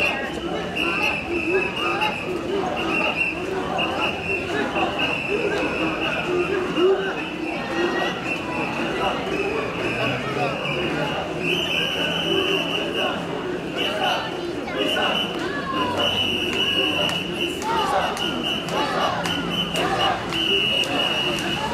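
A crowd of men and women talks and calls out outdoors.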